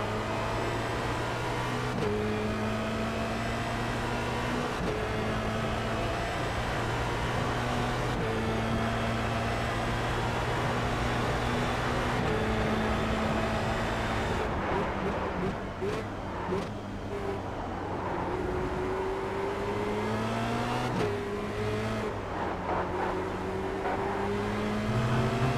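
A racing car engine roars loudly, rising in pitch through each gear and dropping sharply at each gear change.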